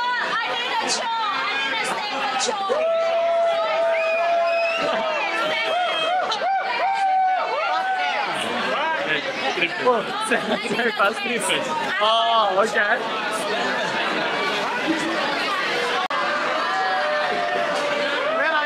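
A crowd of people talks and cheers loudly all around.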